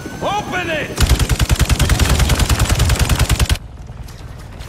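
Rapid gunfire rattles in a loud burst.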